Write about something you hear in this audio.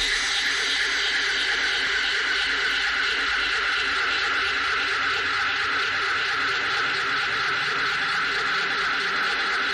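Dance music with a steady, thumping beat plays loudly from a DJ's decks.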